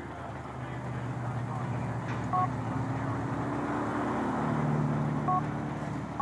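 A truck drives past.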